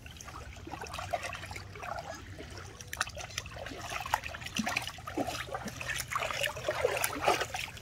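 Water splashes and sloshes as hands scrub a soft toy in shallow water.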